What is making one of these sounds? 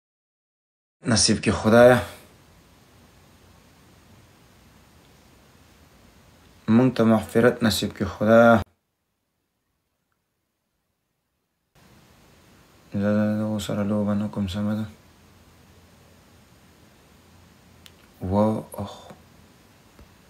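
A young man speaks calmly and close by in short bursts.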